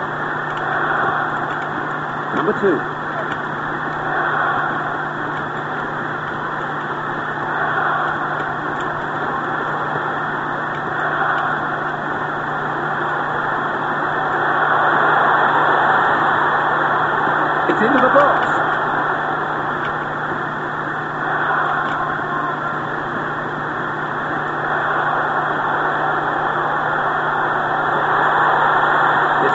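A large crowd roars steadily in a stadium, swelling now and then.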